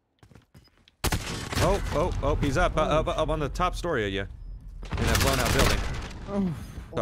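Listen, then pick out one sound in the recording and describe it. Gunfire rattles loudly and close.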